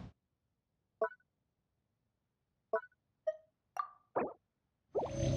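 Menu buttons click softly.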